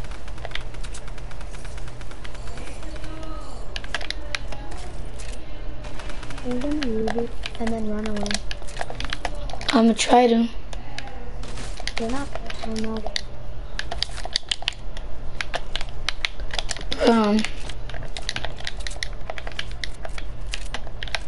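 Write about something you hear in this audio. Quick clicks and knocks of building pieces snap into place in rapid bursts.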